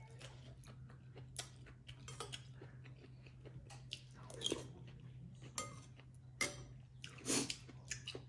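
A utensil clinks against a bowl.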